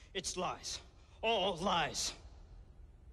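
A man protests loudly and urgently.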